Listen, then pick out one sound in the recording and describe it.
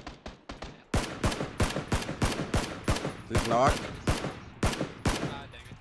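Rifle shots fire in rapid succession, with loud sharp cracks.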